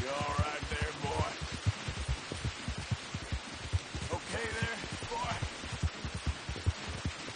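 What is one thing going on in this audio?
Horse hooves thud steadily at a gallop.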